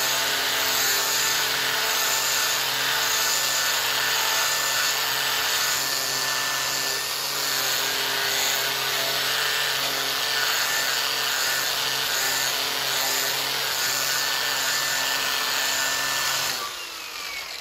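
An electric sander whirs loudly against a metal sheet.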